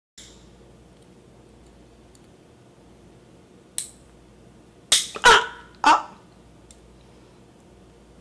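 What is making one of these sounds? Long fingernails click and tap together.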